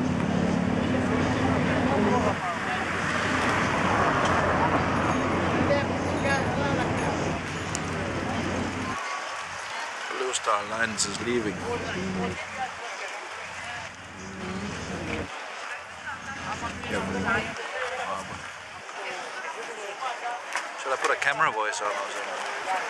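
Men and women talk excitedly nearby.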